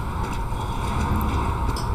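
Footsteps run across cobblestones.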